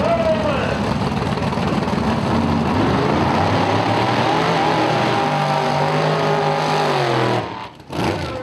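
Drag racing engines roar loudly and rev up.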